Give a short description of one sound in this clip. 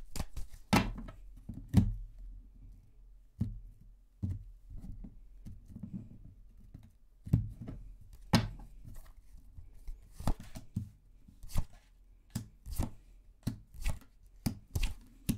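Playing cards tap and slide on a wooden table.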